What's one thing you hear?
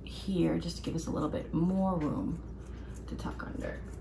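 Scissors snip fabric.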